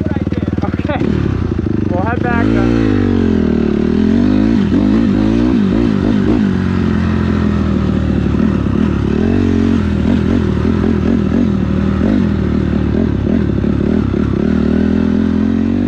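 A dirt bike engine revs up and down hard as it rides off.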